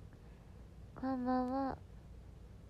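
A young woman lets out a short, high whimper close by.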